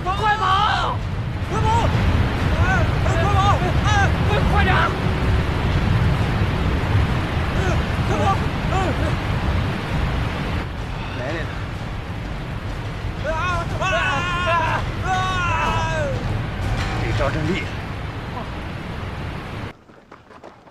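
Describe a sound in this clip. Floodwater roars and crashes loudly.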